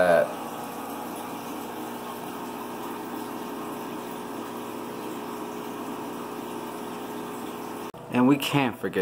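Water bubbles and gurgles steadily from an aquarium pump.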